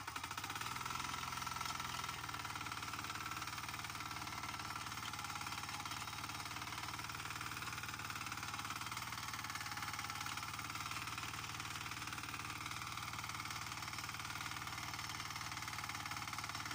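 Soil and potatoes rustle and thud as a plough turns the earth.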